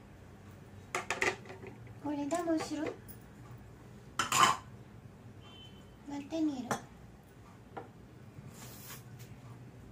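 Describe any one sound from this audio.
A metal pot clinks and knocks against a plate.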